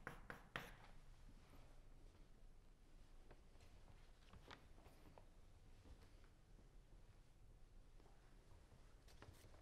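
Footsteps walk slowly across a hard floor.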